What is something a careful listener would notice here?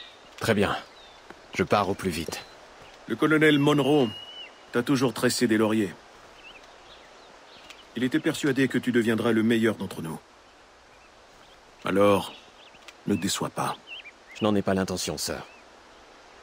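Two men talk calmly with each other up close.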